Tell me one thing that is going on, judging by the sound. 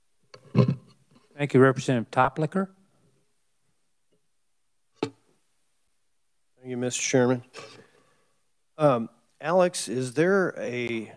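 Men speak calmly through microphones, taking turns.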